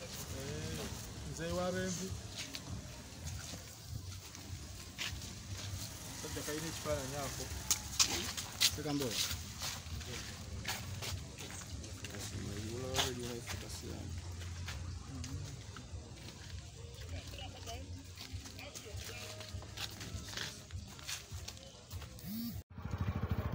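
Several men talk nearby outdoors, with animation.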